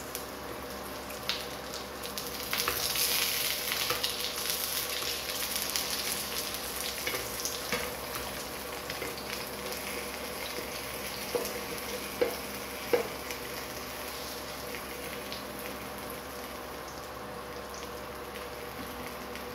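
A wooden spatula scrapes and taps against a frying pan.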